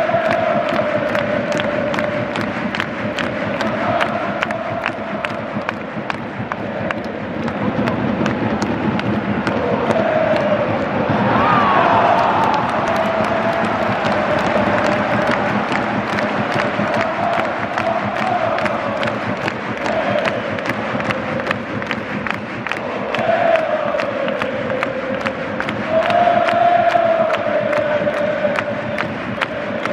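A fan nearby claps hands in a steady rhythm.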